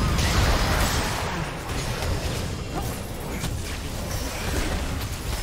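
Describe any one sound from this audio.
Spell effects crackle and burst in a game battle.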